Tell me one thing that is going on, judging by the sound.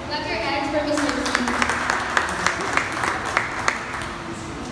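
People clap their hands in applause.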